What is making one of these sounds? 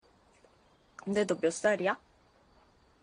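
A young woman asks a question calmly.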